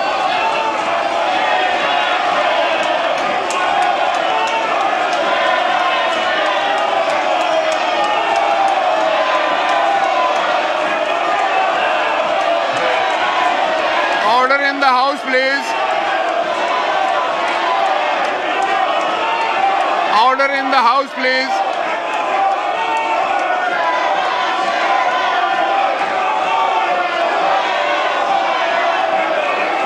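A large crowd of men shouts and chants loudly in a large echoing hall.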